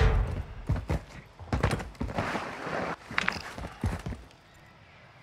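Footsteps tread quickly on stone.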